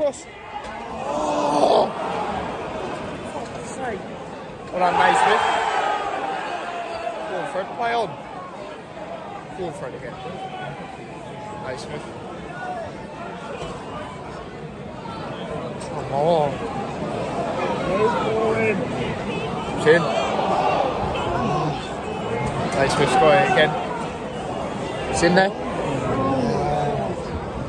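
A crowd chants and sings in a large echoing hall.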